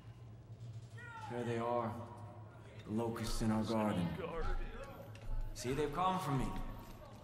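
A man speaks slowly and dramatically with a deep voice.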